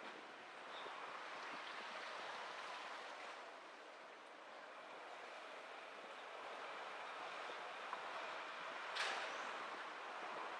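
A car drives along a city street with a steady road hum.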